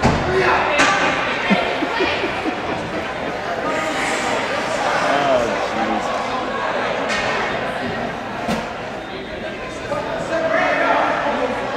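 Ice skates scrape across the ice.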